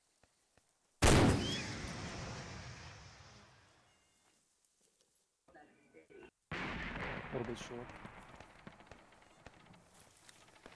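A rocket launcher fires with a loud boom that echoes and fades slowly.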